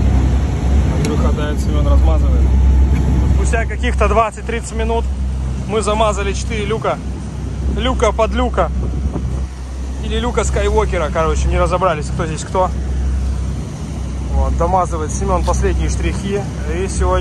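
A man talks nearby in a relaxed voice.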